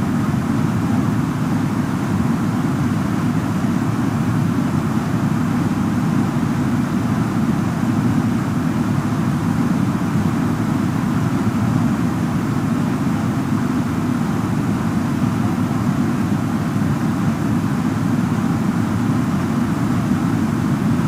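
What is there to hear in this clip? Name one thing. Jet engines hum with a steady low roar.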